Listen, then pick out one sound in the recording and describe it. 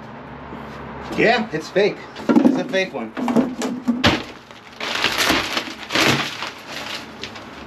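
Plastic sheeting rustles and crinkles close by.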